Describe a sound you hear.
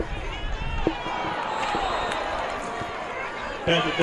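A crowd cheers loudly as a play unfolds.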